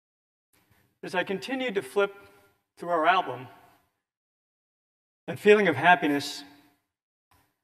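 A man speaks through a microphone in a large hall, in short phrases with pauses.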